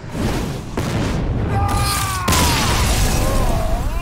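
A game sound effect chimes and whooshes as a card is played.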